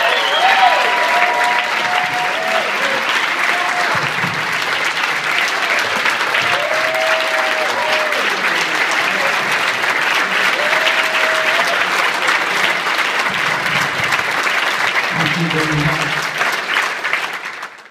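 A large crowd claps and cheers in a big echoing hall.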